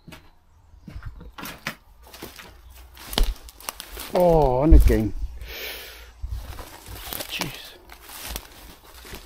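Footsteps crunch and rustle through dry undergrowth outdoors.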